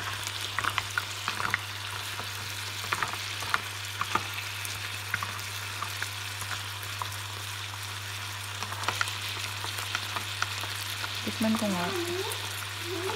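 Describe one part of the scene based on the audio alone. Mussels sizzle in a hot pan.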